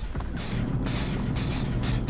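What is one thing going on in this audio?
Footsteps run across a floor.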